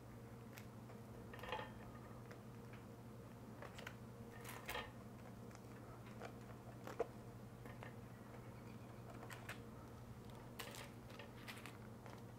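Cooked batter sticks are set down on a wire cooling rack.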